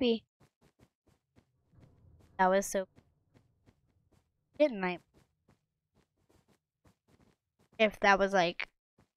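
A boy talks excitedly in short bursts, close to a microphone.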